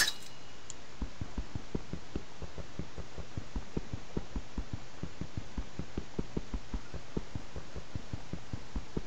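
An axe chops wood with quick, repeated knocks.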